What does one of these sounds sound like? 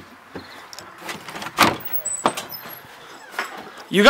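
A door latch clicks and rattles.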